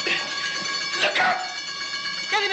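A man cries out in pain.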